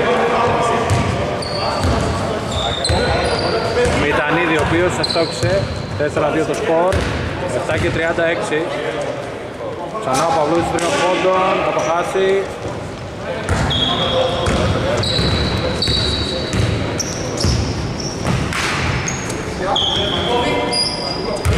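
Men shout and call out to each other across an echoing hall.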